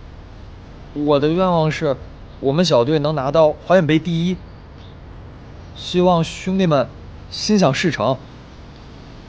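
A young man speaks calmly into a handheld microphone outdoors.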